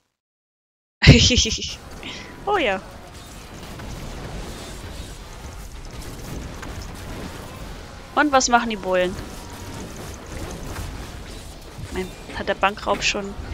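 Magic blasts and explosions crash and boom in a busy fight.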